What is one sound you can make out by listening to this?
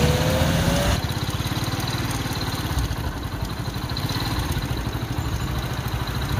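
A bus engine rumbles as the bus approaches.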